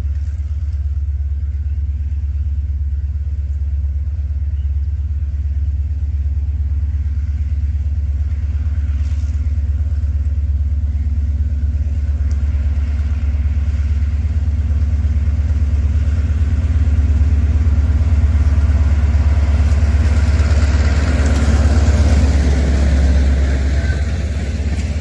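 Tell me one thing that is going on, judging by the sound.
A diesel locomotive engine rumbles, growing louder as it approaches and passes close by.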